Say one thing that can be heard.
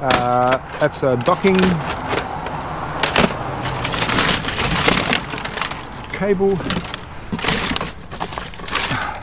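Plastic and metal parts clatter as they are rummaged through by hand.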